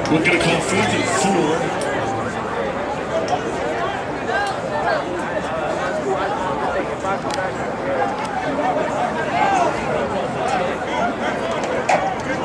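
Several young men talk and call out nearby outdoors.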